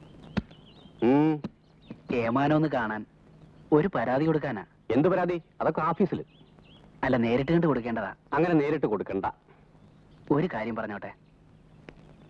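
An elderly man speaks sternly and close by.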